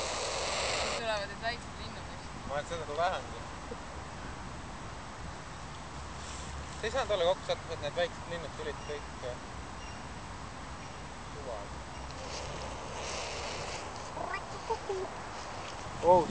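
A bird chirps and trills nearby outdoors.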